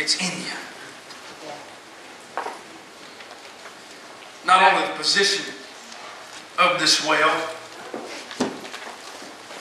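A man speaks through loudspeakers in a large echoing hall, in short bursts with pauses.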